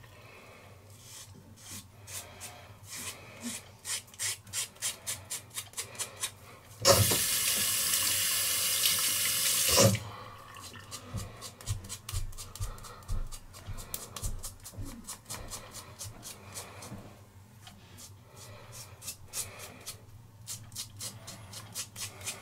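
A razor scrapes across stubble in quick short strokes, close by.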